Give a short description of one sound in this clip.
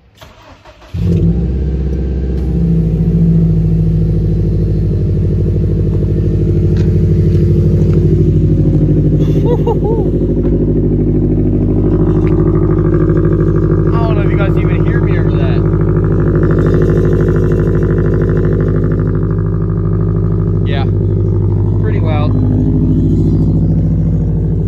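A car engine rumbles loudly and steadily.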